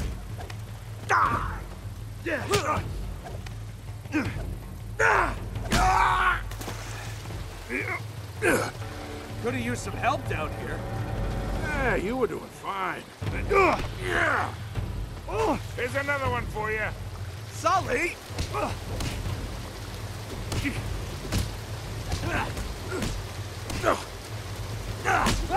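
Fists thud in blows during a fistfight.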